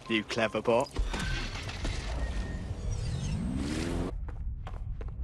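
A car engine starts and revs up.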